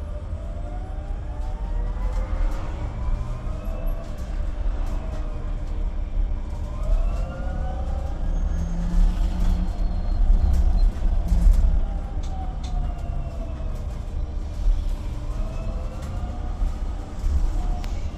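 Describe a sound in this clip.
A bus engine rumbles low and steadily.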